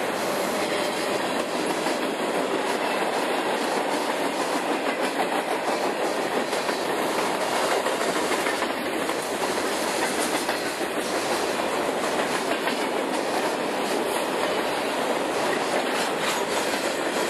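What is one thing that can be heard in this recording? Freight cars rumble and clatter steadily past on the rails, close by.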